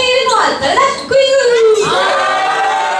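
A young woman speaks with animation through a microphone over loudspeakers.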